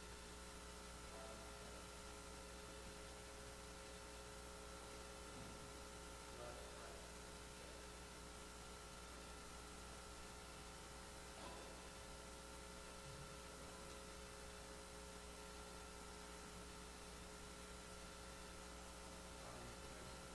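A man speaks softly at a distance in a large room.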